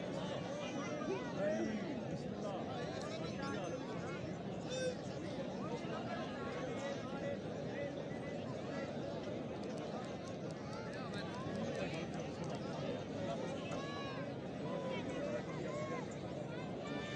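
A crowd of men chatters and shouts outdoors, some distance away.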